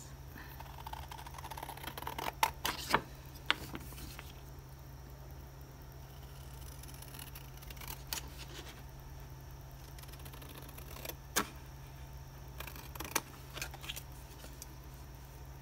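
Scissors snip through thin card with sharp crisp cuts.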